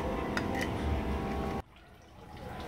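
Chopsticks clink against a plate.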